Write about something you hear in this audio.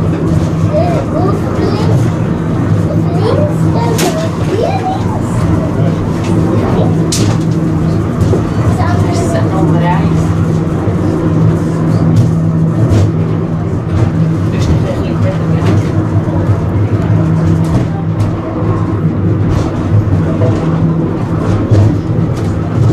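A funicular car hums steadily as it climbs the track.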